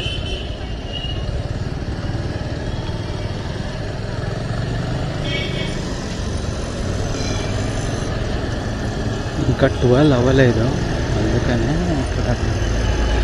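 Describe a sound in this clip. An engine rumbles steadily while driving through traffic.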